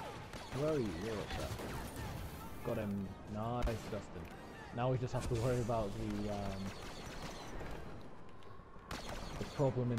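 A blaster rifle fires rapid laser shots.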